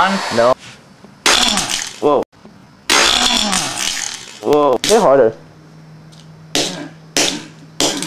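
A hammer strikes metal with sharp bangs.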